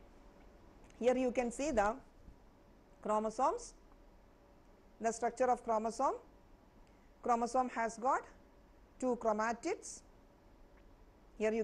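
A woman speaks calmly into a microphone in short phrases.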